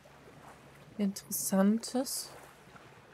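A young woman speaks briefly and with animation, close to a microphone.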